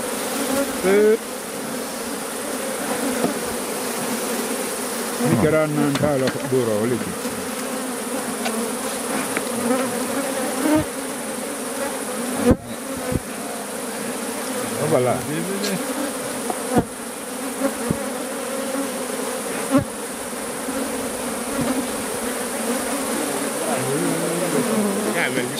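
A swarm of bees buzzes steadily up close.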